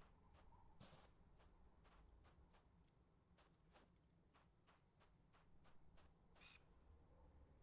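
Footsteps crunch softly on rocky ground.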